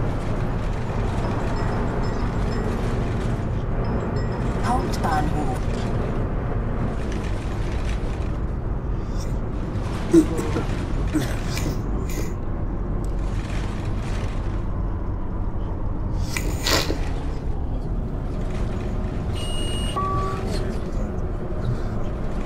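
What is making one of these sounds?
A bus engine rumbles steadily as it drives along a street.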